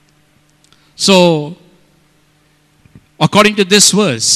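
A middle-aged man preaches with animation into a microphone, his voice loud through a loudspeaker.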